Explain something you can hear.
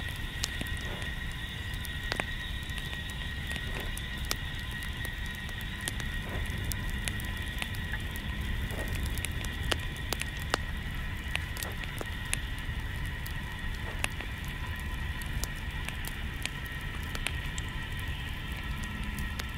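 A small wood fire crackles and pops close by.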